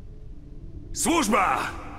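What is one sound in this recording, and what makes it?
A man speaks in a low, rough voice.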